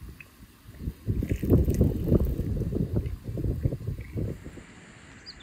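Hot tea pours from a samovar tap into a glass.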